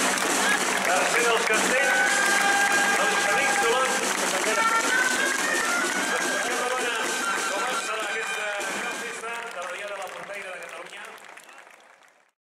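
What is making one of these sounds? A large crowd claps.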